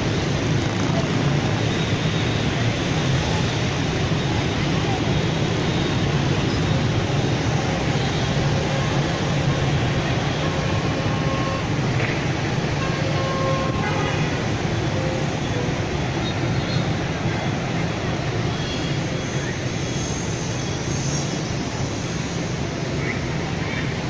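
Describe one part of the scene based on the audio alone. Heavy traffic of motorbikes and cars roars steadily along a busy road.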